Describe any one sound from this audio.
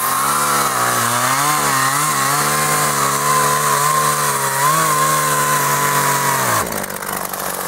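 A chainsaw roars loudly as it cuts through a log.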